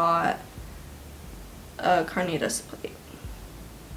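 A teenage girl speaks briefly and casually, close to a microphone.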